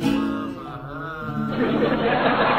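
A man sings up close.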